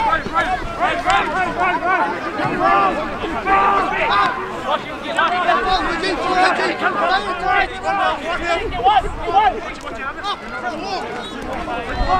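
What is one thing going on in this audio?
Young men shout and call out to one another across an open field.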